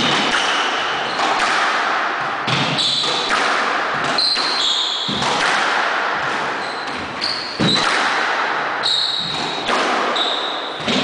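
A squash ball smacks hard against the walls in an echoing room.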